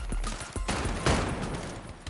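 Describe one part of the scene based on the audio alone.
Ice shatters with a sharp crackle.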